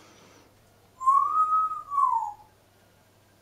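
A parrot whistles a short rising and falling note.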